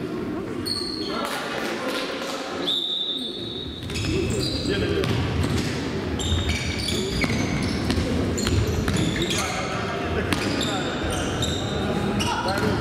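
A ball thuds as children kick it in an echoing hall.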